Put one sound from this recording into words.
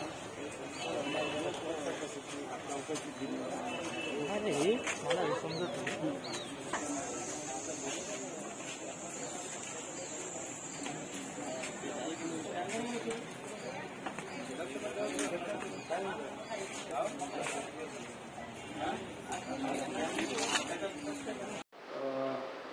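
A crowd of men talks and murmurs outdoors.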